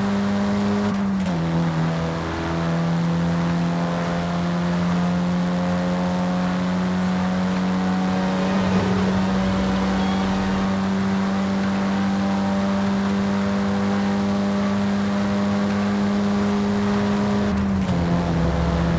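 A car engine's pitch drops briefly as gears shift.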